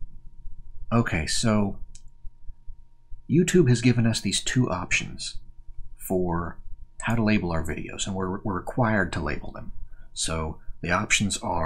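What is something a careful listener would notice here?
A man speaks calmly and close by, heard through a microphone.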